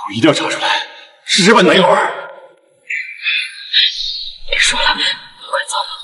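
A young woman speaks tearfully.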